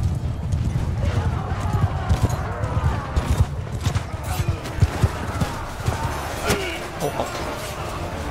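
Many men shout and cry out in battle.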